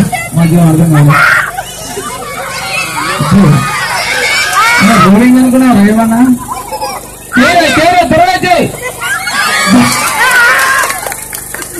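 A crowd of children and adults chatter and shout close by.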